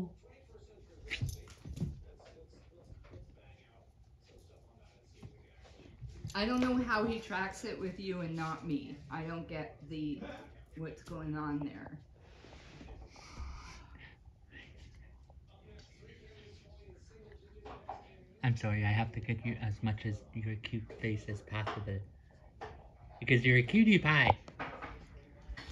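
A dog's paws patter on the floor.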